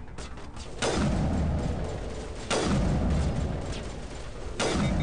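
Sniper rifle shots boom one after another, each with a rumbling echo.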